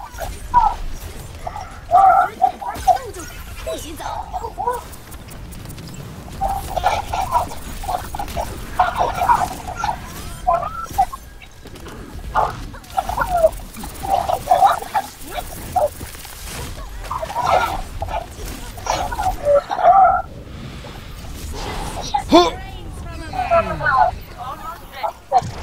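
Energy weapons fire in rapid bursts amid game battle sounds.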